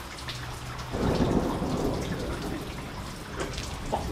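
Thunder rumbles loudly nearby.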